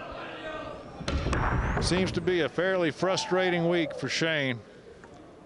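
Pool balls break apart and knock against each other.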